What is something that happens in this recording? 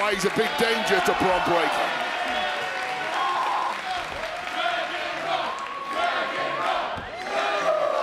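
A large crowd cheers and chants in a big echoing arena.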